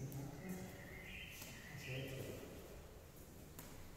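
Footsteps tap on a hard floor in a quiet echoing room.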